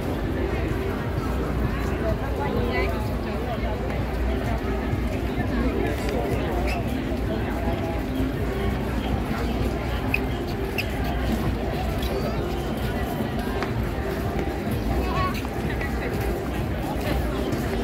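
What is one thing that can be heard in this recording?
Many people chatter in a lively crowd outdoors.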